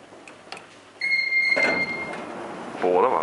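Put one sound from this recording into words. An elevator chime dings once.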